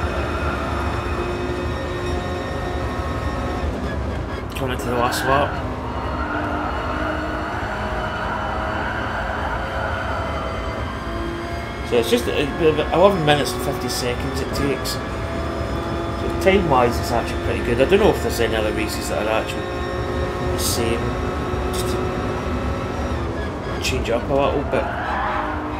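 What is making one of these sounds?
A racing car engine roars steadily, rising and falling in pitch as it shifts gears.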